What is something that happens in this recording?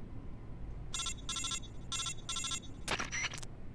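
A radio beeps in quick repeated bursts.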